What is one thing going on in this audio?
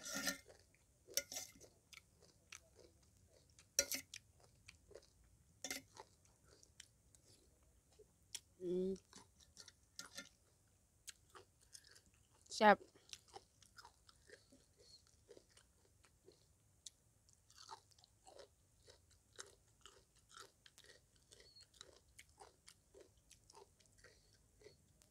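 A young woman chews food loudly and smacks her lips close to a microphone.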